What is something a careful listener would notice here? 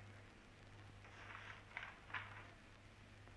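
Paper rustles as a file is handed over.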